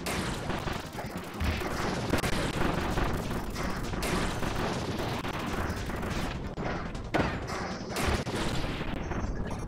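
Cartoonish game hits and magic bursts crash and whoosh rapidly.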